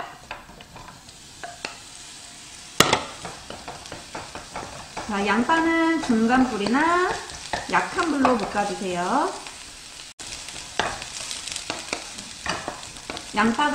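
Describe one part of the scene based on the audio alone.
Onions sizzle steadily in a hot pan.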